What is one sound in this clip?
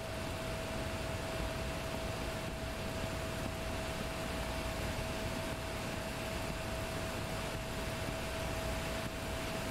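Wind roars steadily past an aircraft cockpit.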